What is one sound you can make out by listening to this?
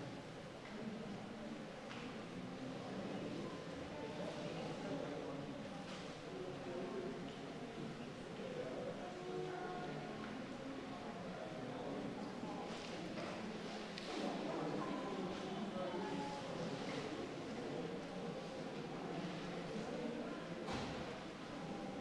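A crowd of men and women murmur and chat nearby, in a large room that echoes.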